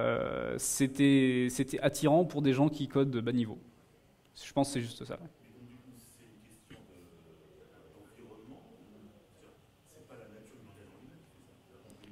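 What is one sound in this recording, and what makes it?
A young man speaks calmly into a microphone in a large room.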